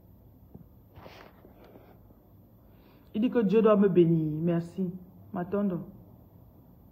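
A woman speaks calmly and close up, as into a phone.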